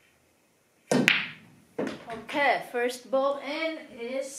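Billiard balls clack together and roll across the table.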